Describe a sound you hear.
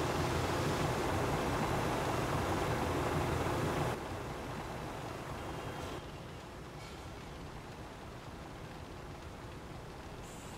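Water gushes from fire hoses with a steady rushing hiss.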